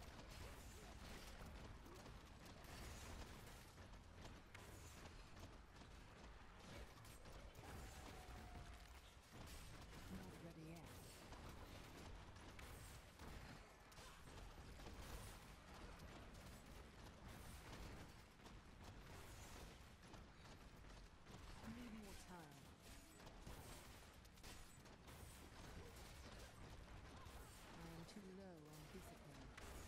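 Magic blasts and explosions crackle and boom in rapid bursts.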